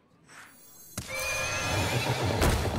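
A magical chime and whoosh ring out as a card is cast.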